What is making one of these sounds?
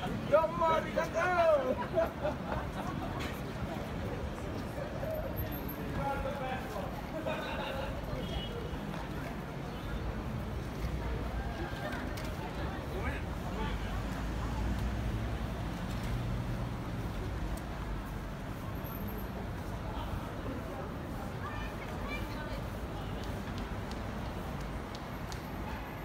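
Traffic hums steadily in the distance.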